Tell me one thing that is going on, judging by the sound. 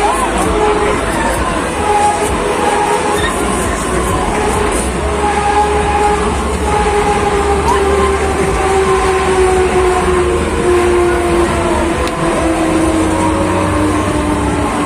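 A fairground ride whirs and rumbles steadily as it spins.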